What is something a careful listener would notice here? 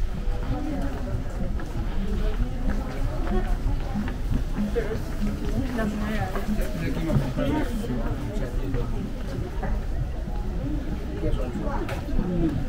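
Men and women chatter nearby in a narrow street.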